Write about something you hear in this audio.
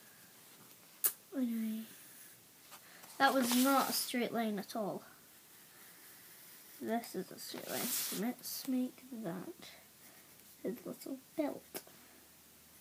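A young girl talks close by, with animation.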